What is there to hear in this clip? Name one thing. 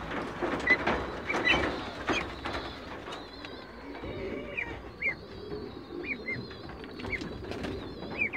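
Ducklings peep in short high chirps.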